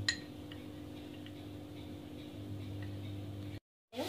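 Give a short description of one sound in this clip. A spoon whisks beaten eggs in a bowl.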